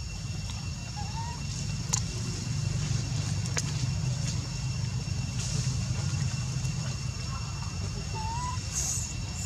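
A baby monkey squeaks softly.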